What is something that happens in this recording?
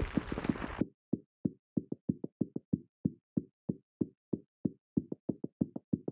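Small balls tick and pop in a quick, steady run as they bounce down.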